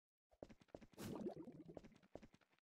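A soft puff bursts with a brief whoosh.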